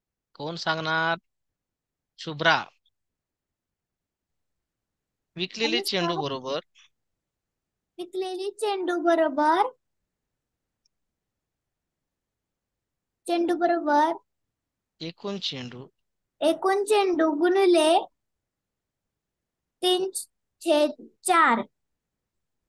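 A woman speaks calmly through a microphone, explaining in short phrases with pauses.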